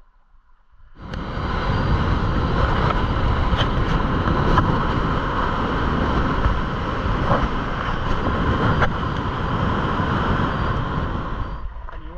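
Tyres crunch and rumble over a gravel road as a vehicle drives.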